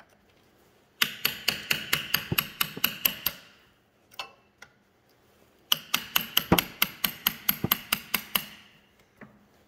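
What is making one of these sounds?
A hammer taps rapidly on a metal chisel.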